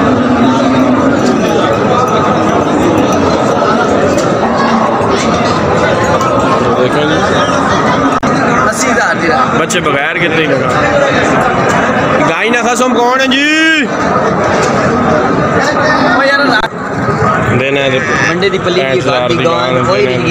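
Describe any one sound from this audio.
A crowd of men talks and calls out all around, outdoors.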